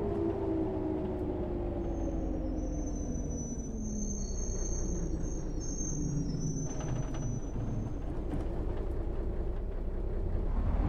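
A bus engine hums steadily, its pitch dropping as it eases off.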